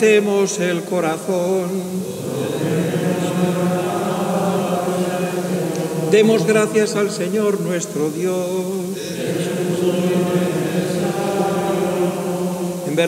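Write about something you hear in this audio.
A man chants steadily through a microphone in a large echoing hall.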